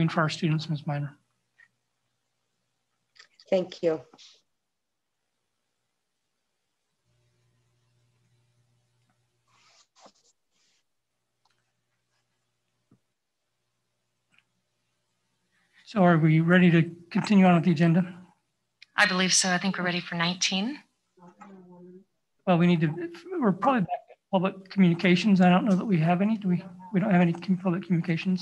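A woman speaks calmly, heard over an online call.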